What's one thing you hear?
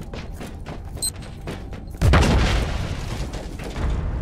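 Heavy footsteps clank on a metal floor.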